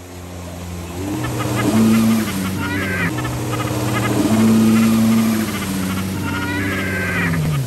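Water sprays and splashes in a loud rush.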